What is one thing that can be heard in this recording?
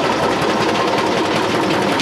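A brush scrapes across grain.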